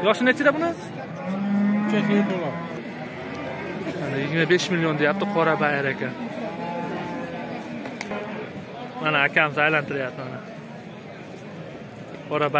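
Several men talk loudly and with animation nearby, outdoors among a crowd.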